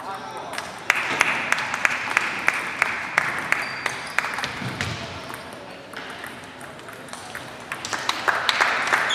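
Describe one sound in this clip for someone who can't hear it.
Ping-pong balls click sharply on tables and paddles in a large echoing hall.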